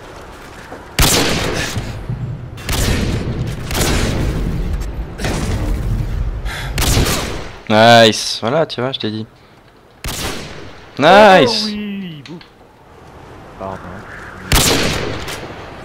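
A sniper rifle fires loud shots.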